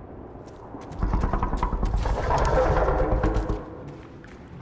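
A dragon roars loudly.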